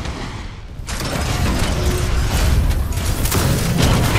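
Heavy machinery rumbles and clanks loudly.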